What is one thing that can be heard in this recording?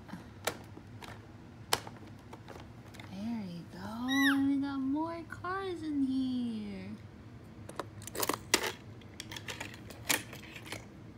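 A hand clicks and rattles a plastic toy case open.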